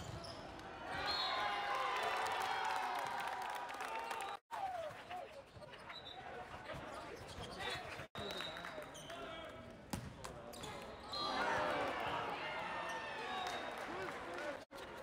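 Young men cheer loudly during play.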